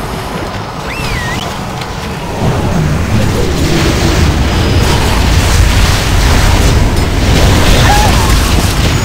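Magical blasts whoosh and crackle amid a noisy fight.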